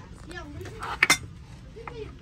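Ceramic trays clink together as a hand lifts them.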